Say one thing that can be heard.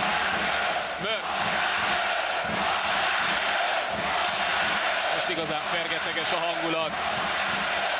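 Sports shoes squeak sharply on the court.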